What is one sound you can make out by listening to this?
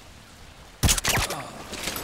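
A silenced pistol fires once.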